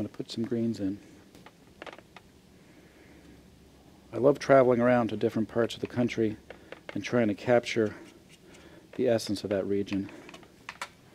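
A man speaks calmly close to a microphone, explaining.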